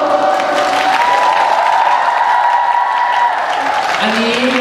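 A young man sings through a microphone.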